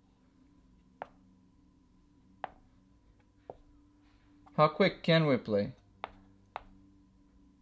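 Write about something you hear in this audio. Wooden chess pieces tap softly on a board.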